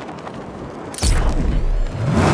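A heavy thud sounds as a figure lands hard on the ground.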